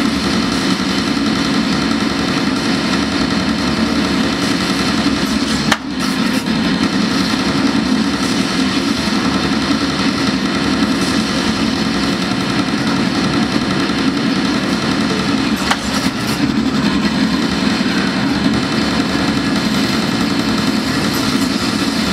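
Loud arcade game gunfire and explosions blare from loudspeakers.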